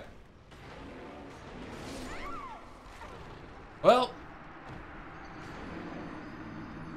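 A young man talks excitedly into a microphone nearby.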